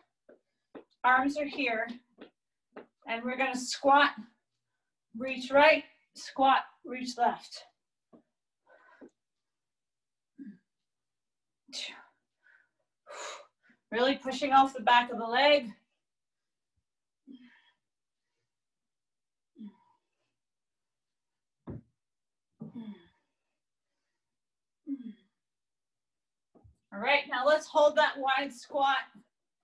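A woman speaks in short bursts nearby.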